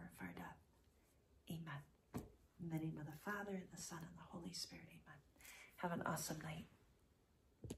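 A woman speaks warmly and with animation close to a microphone.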